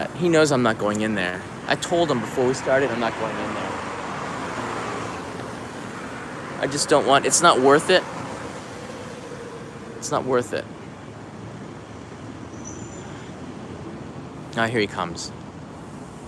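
A man talks close up, calmly, in short bursts.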